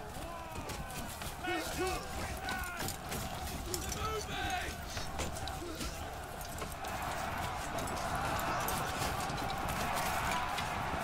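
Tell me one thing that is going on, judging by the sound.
Metal weapons clash and clang repeatedly.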